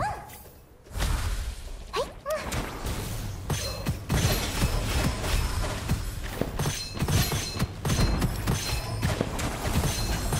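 A laser weapon fires in rapid bursts.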